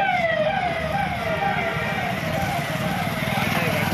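A motorbike engine putters close by.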